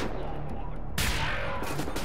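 An energy weapon fires with a sharp burst.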